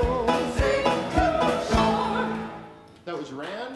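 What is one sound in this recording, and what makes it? Instruments play along with the singing.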